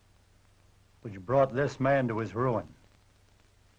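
An elderly man speaks calmly and closely.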